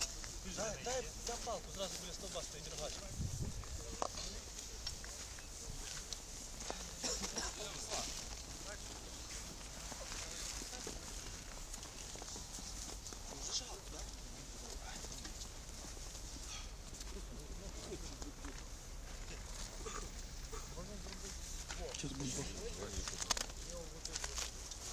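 Men talk nearby outdoors.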